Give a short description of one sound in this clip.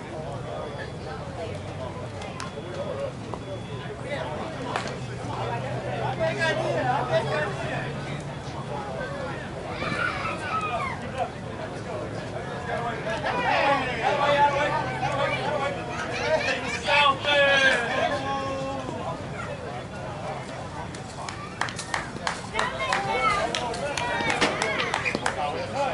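Young players chatter and call out at a distance outdoors.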